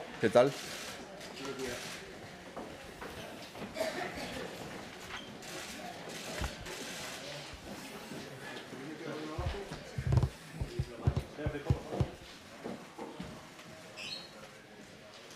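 Men and women chatter in the background.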